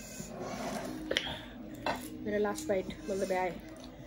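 A young woman slurps noodles.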